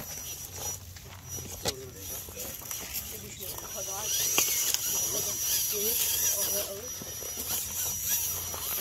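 Rubber tyres of a radio-controlled rock crawler scrape and knock over rocks.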